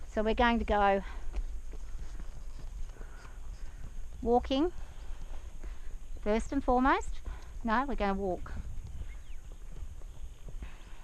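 A horse's hooves thud softly on dirt at a walk.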